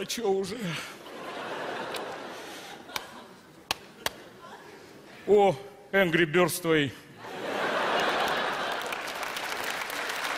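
An audience laughs in a large hall.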